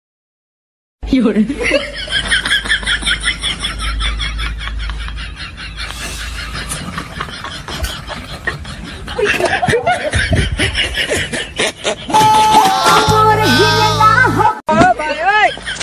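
Young men chat and laugh nearby outdoors.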